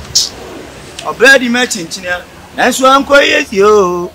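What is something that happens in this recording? A second young man speaks loudly close by.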